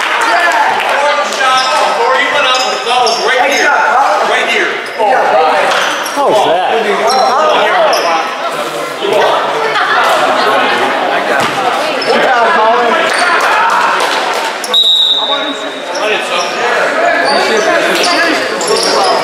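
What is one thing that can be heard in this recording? A crowd of people talk and cheer in a large echoing hall.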